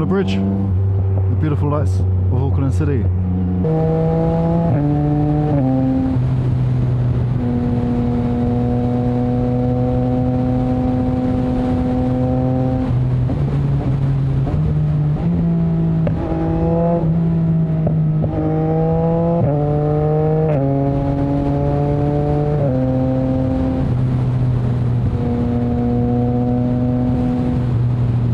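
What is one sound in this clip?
A motorcycle engine drones loudly, its pitch climbing and dropping as the gears shift.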